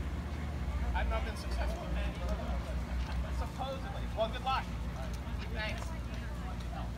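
Several adults talk at a distance outdoors.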